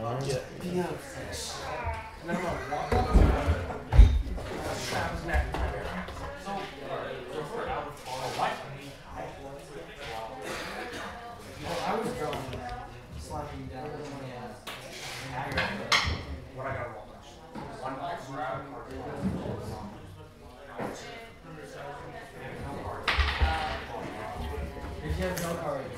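Two men talk casually nearby.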